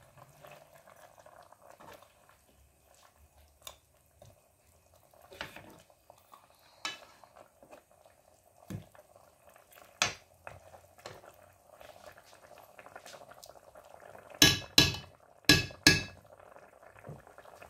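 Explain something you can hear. A stew simmers and bubbles in a pot.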